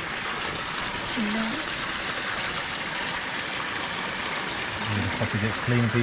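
A hand splashes in water.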